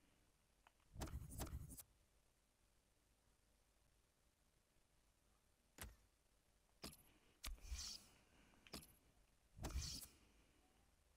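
Short electronic menu blips and whooshes sound in quick bursts.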